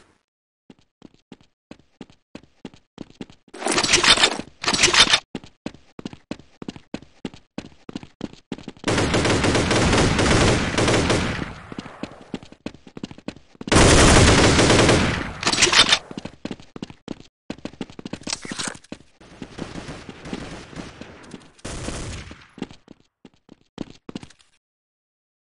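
Footsteps tap quickly and evenly on stone.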